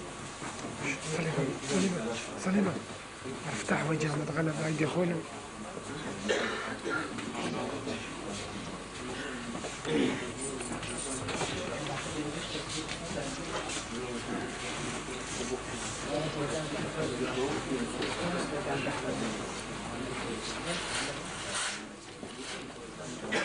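A man chants in a low voice, close by.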